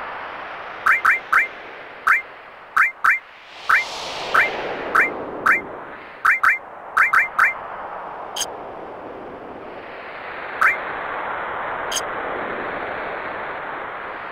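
Soft game music plays throughout.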